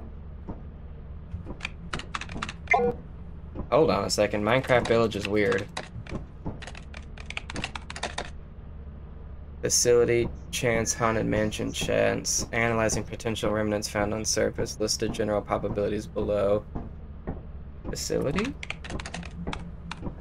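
Keys clatter as someone types on a keyboard.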